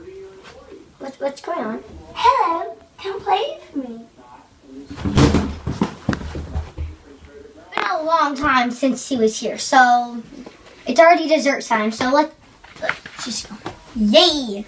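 Two young girls talk with animation close by.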